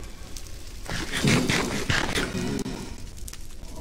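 A game character munches food with quick crunchy bites.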